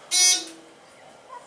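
An elevator chime rings once.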